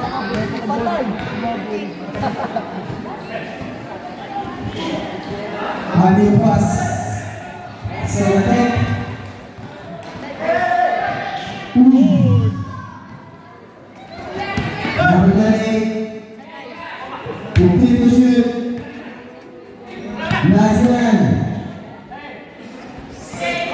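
A crowd of spectators chatters and shouts.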